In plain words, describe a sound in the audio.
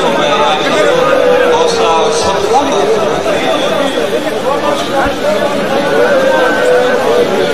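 A large crowd of men chants and shouts loudly, heard outdoors.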